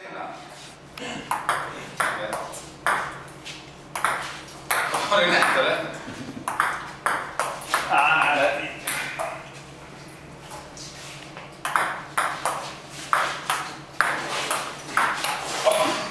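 A ping pong ball clicks back and forth on paddles and a table in a quick rally.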